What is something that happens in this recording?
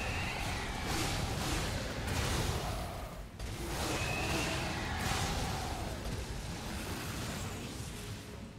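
Sword blows clash and burst loudly in a game fight.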